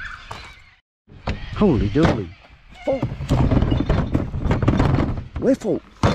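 A plastic bin lid bangs shut.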